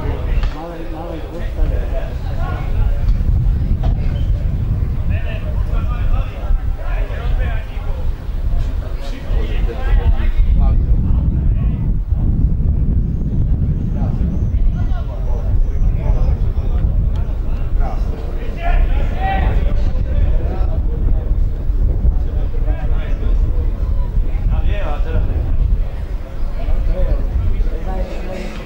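Men shout to each other across an open outdoor field.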